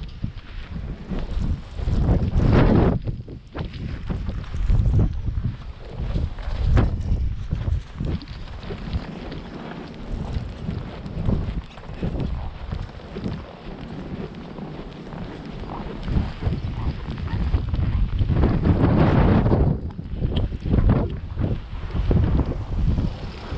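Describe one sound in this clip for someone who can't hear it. Strong wind gusts and roars outdoors, buffeting loudly.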